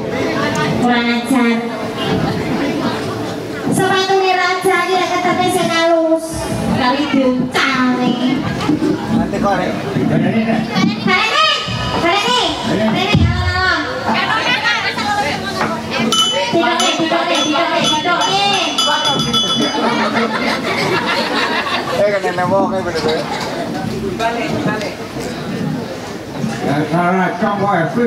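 A man sings loudly through a loudspeaker, in a voice that wavers.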